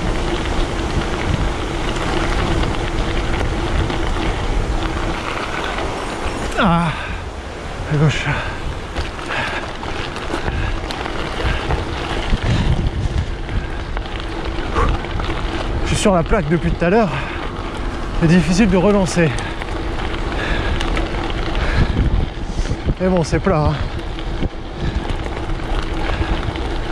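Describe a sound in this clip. Bicycle tyres crunch over gravel.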